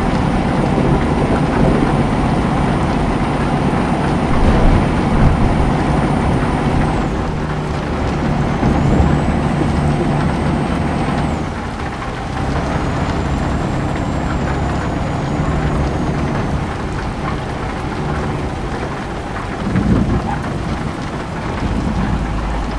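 Windscreen wipers sweep back and forth.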